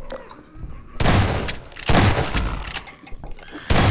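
A shotgun fires loud blasts that echo.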